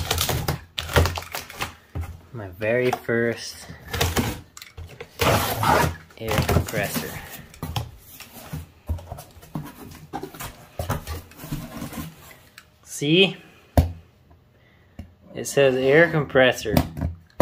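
A utility knife slices through packing tape on a cardboard box.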